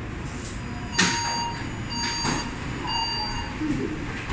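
A door chime sounds in quick tones.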